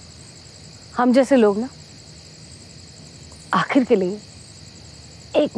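A woman speaks close by in a pleading, emotional voice.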